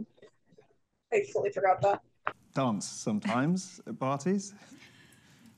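A woman answers calmly close by.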